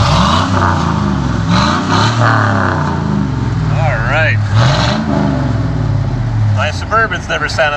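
A pickup truck's engine revs up and down loudly through its exhaust pipe.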